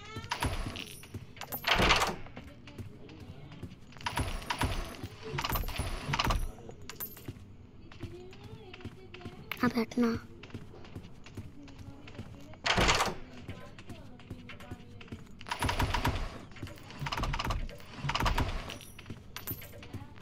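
Coins jingle as they are picked up.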